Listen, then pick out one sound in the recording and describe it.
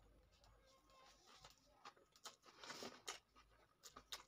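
A man chews food with wet smacking sounds, close up.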